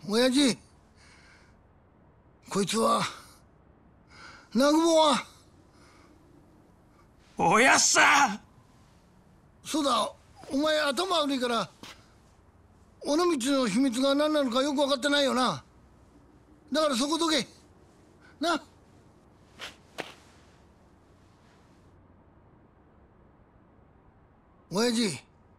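A young man speaks tensely and urgently, close by.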